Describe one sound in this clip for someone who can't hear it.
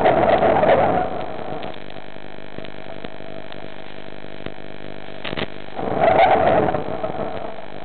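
Air bubbles rush and gurgle underwater in loud bursts.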